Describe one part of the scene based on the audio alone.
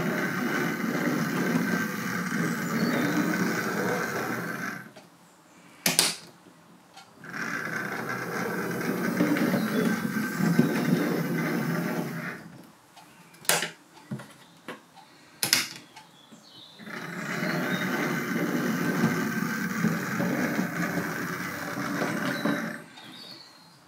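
A small electric motor whirs as a model locomotive runs along the track.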